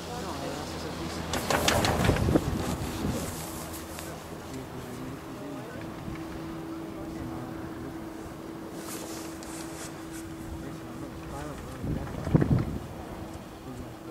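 Wind rushes past steadily outdoors.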